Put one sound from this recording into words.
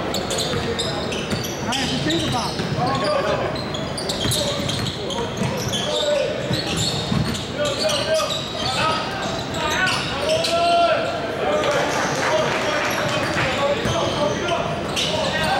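Young men shout and call out to each other in an echoing gym.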